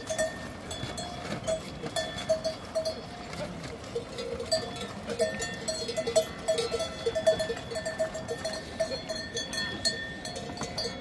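Goats bleat over and over.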